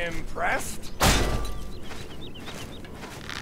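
A heavy axe swings and lands with a loud thud.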